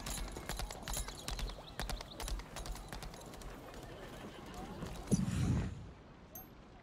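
Hooves clatter on stone paving.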